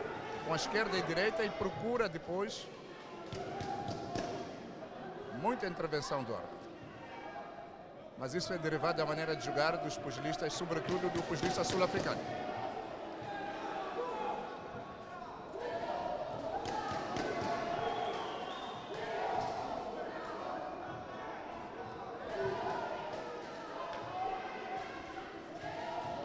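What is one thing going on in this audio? Punches thud on boxing gloves.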